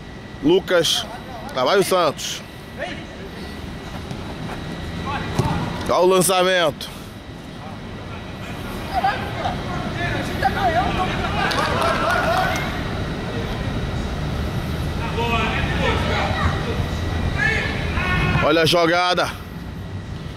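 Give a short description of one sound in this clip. Men shout loudly to each other during a football game outdoors.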